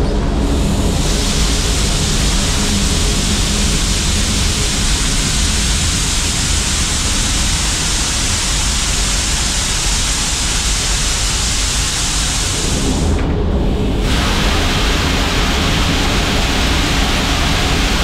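Grain pours in a steady rushing stream onto a metal grate.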